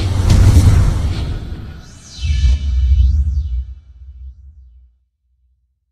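A deep rumbling whoosh booms and slowly fades.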